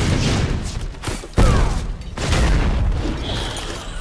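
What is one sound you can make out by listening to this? A burst of dust booms nearby.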